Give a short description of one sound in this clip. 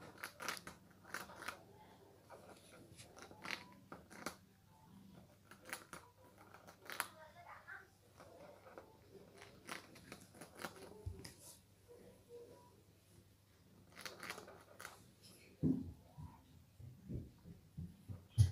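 A hamster nibbles and crunches on a muffin up close.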